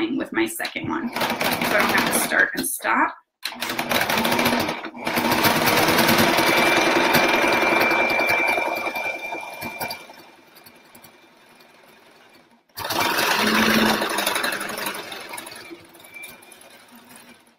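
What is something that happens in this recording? A sewing machine hums as it stitches.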